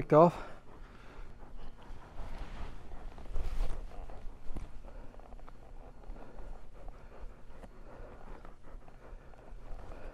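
A horse's hooves shuffle softly in loose dirt.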